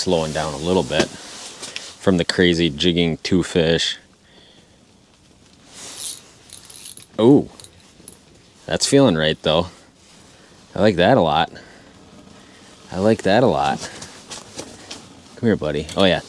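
Fishing line and gear rustle and click in a man's hands.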